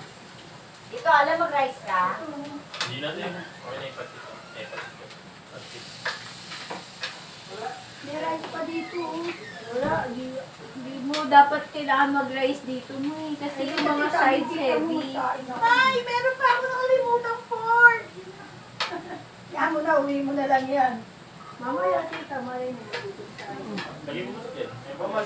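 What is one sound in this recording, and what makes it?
Several adults talk and chat nearby, with women's voices loudest.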